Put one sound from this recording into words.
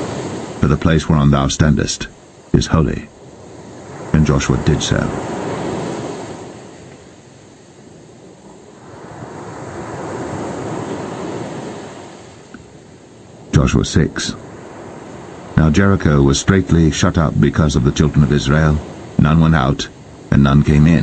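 Waves wash onto a pebble beach and draw back.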